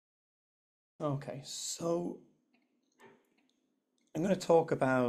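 A man speaks calmly through a microphone, as if in an online talk.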